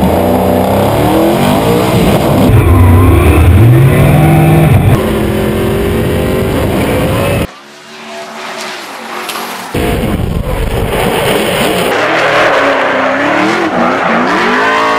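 A race car engine roars and revs up and down loudly.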